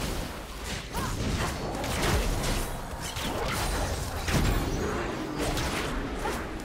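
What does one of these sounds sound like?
Game sword strikes clang in quick bursts.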